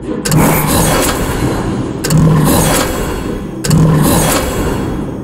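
A dinosaur roars loudly three times.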